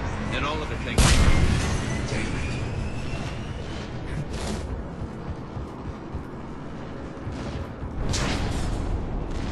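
Gunshots crack sharply with a booming echo.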